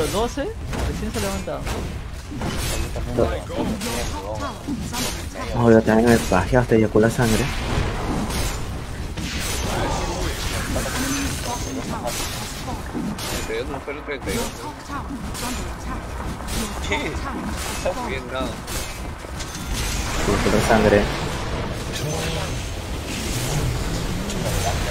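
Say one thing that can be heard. Fantasy battle sound effects clash and whoosh.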